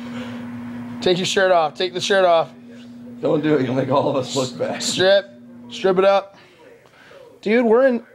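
A young man sings loudly in short bursts close by.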